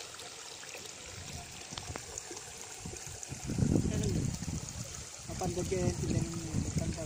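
Water splashes as a bag is emptied.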